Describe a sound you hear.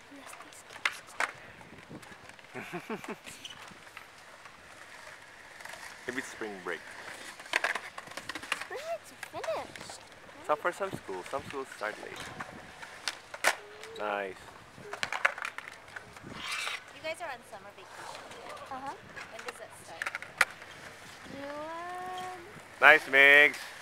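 Skateboard wheels roll and clack on concrete.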